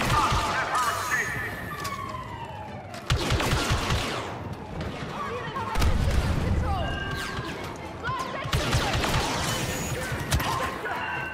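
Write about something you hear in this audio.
Blaster rifles fire in rapid bursts of laser shots.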